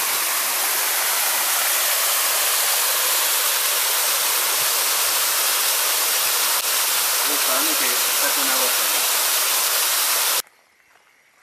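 A stream splashes and rushes loudly over rocks.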